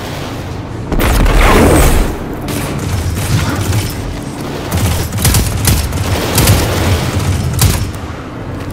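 Gunfire and explosions crack and boom in bursts.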